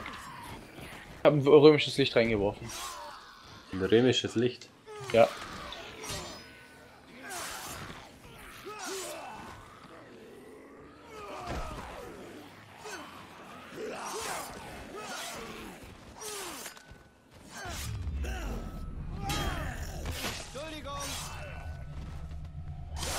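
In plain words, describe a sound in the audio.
Zombies groan and moan all around.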